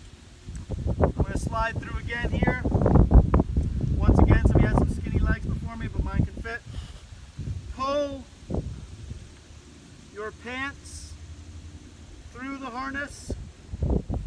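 A young man talks calmly and close by, pausing between phrases.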